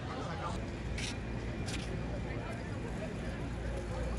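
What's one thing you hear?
Men and women chat at a distance.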